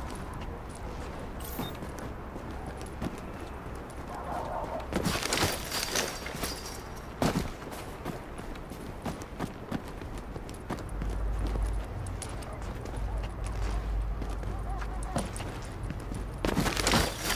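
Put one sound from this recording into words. Footsteps crunch over snow and rubble.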